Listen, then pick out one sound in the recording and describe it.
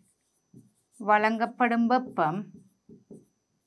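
A woman speaks calmly and clearly, close by.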